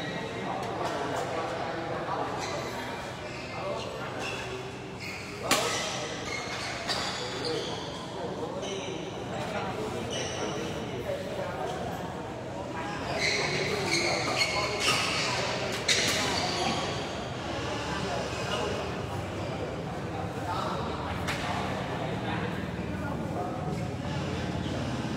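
A crowd of young men chatter and call out nearby in an echoing hall.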